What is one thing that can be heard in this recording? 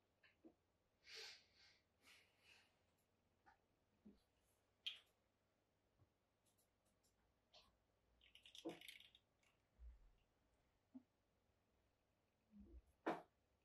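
Leather rustles and creaks as hands fold it.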